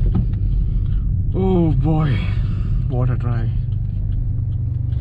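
A car engine hums steadily, heard from inside the car.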